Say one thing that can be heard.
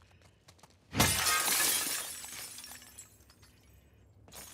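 Glass shatters loudly and falls in pieces.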